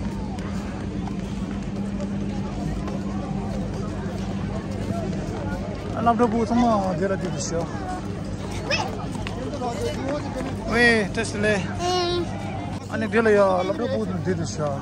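A crowd of children chatters outdoors.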